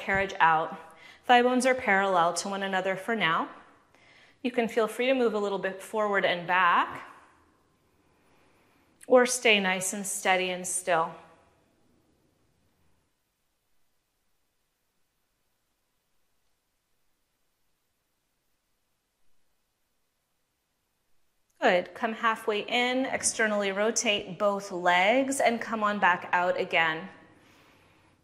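A woman speaks calmly and clearly, close by.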